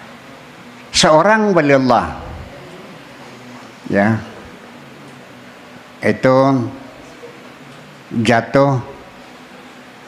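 An elderly man speaks slowly into a microphone, in short phrases with long pauses.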